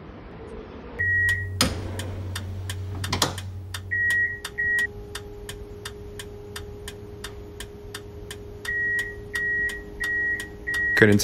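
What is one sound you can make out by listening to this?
A tram's door warning signal beeps repeatedly.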